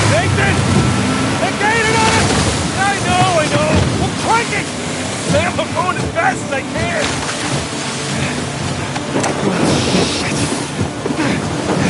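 A second man shouts back with alarm.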